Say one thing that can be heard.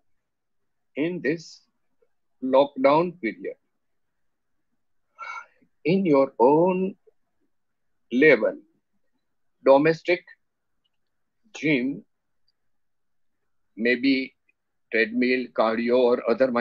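An elderly man speaks calmly through an online call, in short phrases with pauses.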